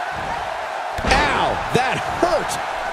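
A body slams heavily onto a ring mat.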